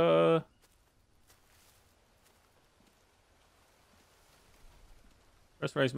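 Footsteps crunch softly over dry leaves.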